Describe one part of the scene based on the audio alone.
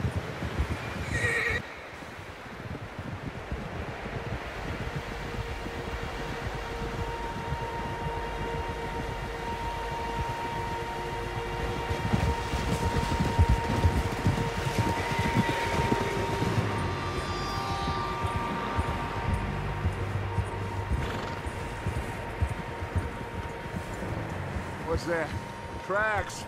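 Wind howls through a snowstorm.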